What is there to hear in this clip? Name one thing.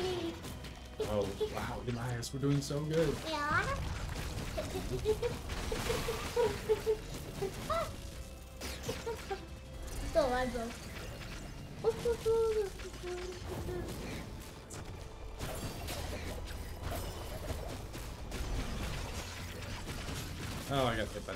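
Video game effects zap and blast.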